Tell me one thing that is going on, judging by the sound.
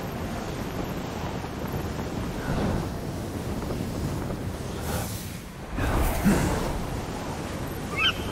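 Wind rushes steadily past a gliding flyer.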